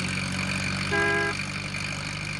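A van's horn toots briefly.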